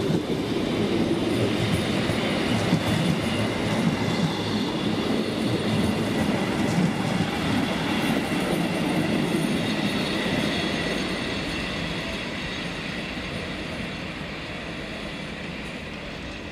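A freight train of car-carrier wagons rumbles past on the rails and fades into the distance.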